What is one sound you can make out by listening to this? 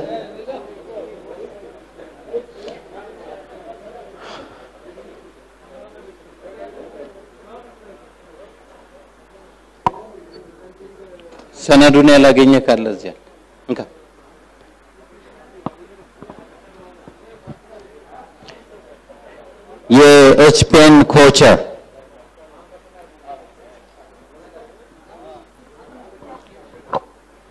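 A crowd of people murmurs and chatters in a large hall.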